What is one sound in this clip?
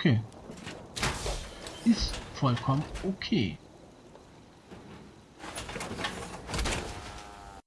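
Heavy armoured footsteps thud and clank.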